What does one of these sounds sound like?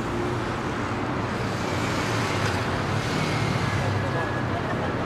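A motorcycle engine drones by.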